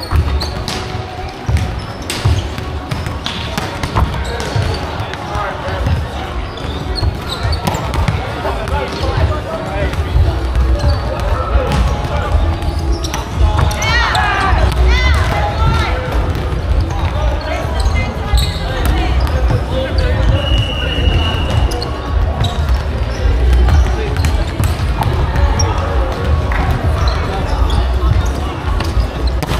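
Volleyballs thump against hands and the floor in a large echoing hall.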